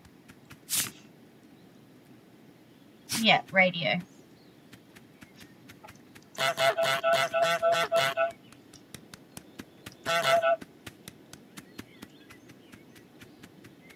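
A goose's feet patter in quick, light steps.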